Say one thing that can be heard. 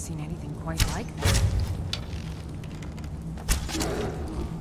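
A bow string twangs as an arrow is loosed.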